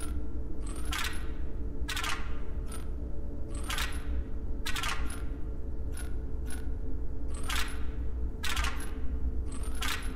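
Game tiles click and chime as they are moved.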